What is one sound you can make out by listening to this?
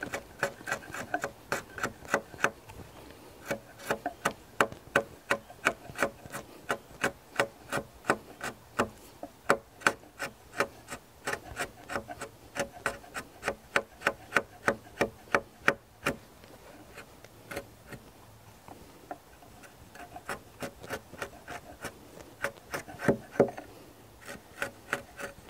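A mallet taps a chisel into wood in quick, sharp blows.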